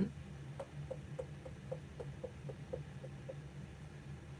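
Hands rub a small cork against a block.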